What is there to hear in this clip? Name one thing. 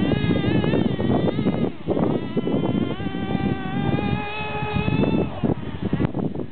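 A small model car's motor whines at a high pitch, rising and falling as it speeds up.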